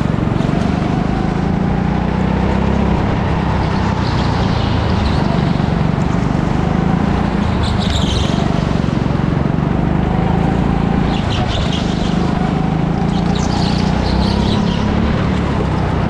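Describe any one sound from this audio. A go-kart engine drones loudly and steadily, rising and falling in pitch.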